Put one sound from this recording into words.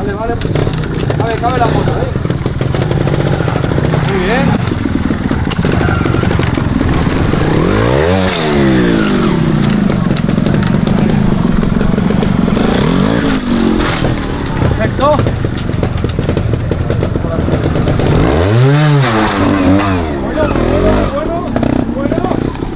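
A motorcycle engine revs in sharp bursts, rising and falling in pitch.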